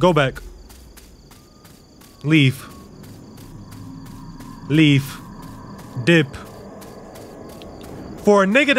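A young man speaks in short, loud bursts close to a microphone.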